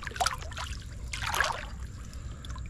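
Water splashes as a hand stirs it.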